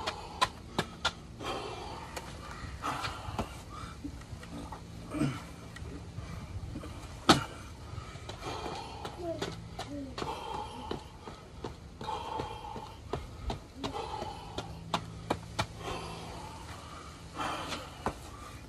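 Metal push-up handles clack on concrete.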